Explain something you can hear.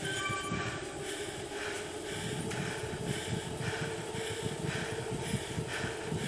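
An exercise bike trainer whirs steadily under fast pedalling.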